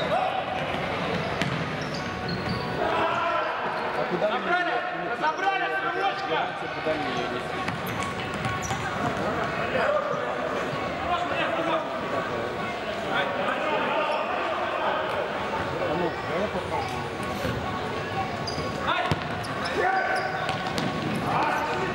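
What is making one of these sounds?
A ball thuds as it is kicked on a hard floor.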